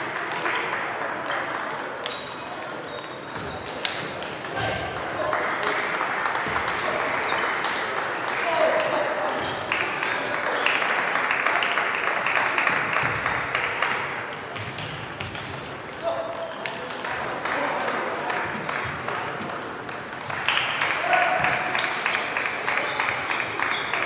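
Table tennis balls click on tables and paddles in a large echoing hall.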